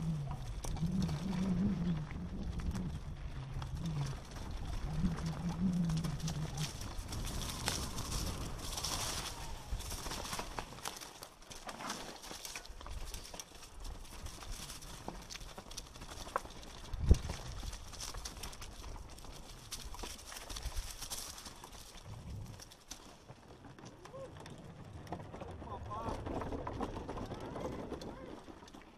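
A mountain bike rattles and bumps down a rocky trail.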